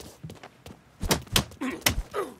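A fist punches a man with heavy thuds.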